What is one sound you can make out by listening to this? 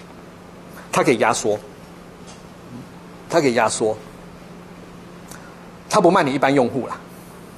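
A middle-aged man speaks calmly through a microphone in a room, in short phrases with pauses.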